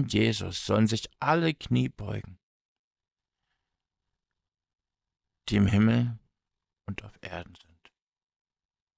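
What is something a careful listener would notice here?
A man speaks calmly and close to a microphone, in short bursts with pauses.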